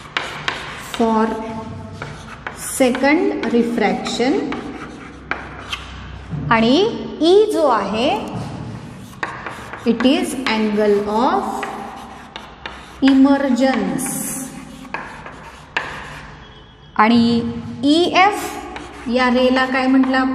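A young woman speaks calmly and clearly, like a teacher explaining.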